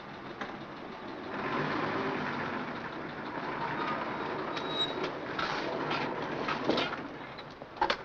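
A truck engine rumbles as the truck drives away.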